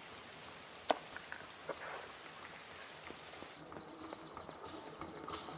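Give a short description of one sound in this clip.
Footsteps tread lightly on hard ground.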